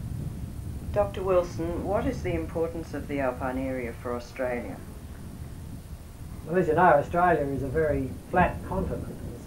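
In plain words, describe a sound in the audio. An older man speaks calmly and close by, outdoors.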